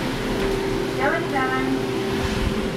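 An elevator button beeps when pressed.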